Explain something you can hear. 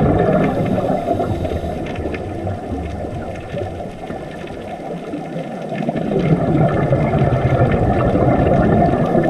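Air bubbles from scuba divers gurgle and rumble underwater.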